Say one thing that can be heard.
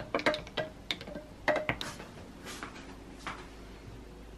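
A spoon clinks against ice in a glass.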